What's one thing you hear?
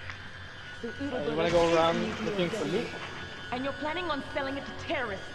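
A woman speaks tensely and firmly.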